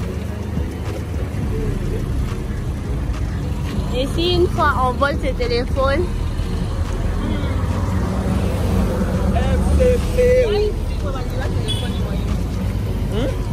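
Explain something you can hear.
Motorbike engines rumble along a busy street nearby.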